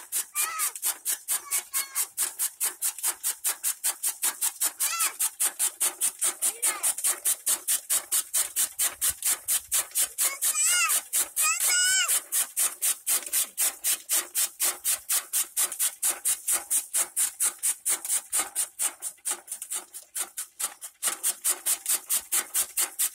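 A fodder cutter chops greens with rapid, steady clacking.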